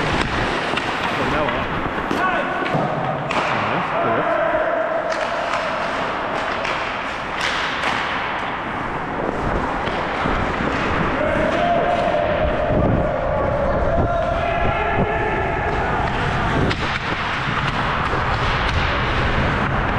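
Ice skates scrape and hiss across the ice, close by, in a large echoing rink.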